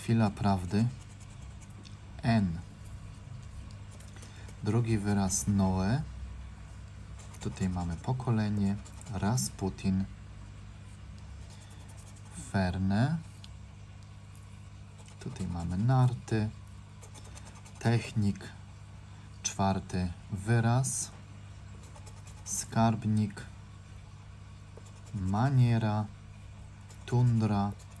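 Something scratches lightly at a paper card.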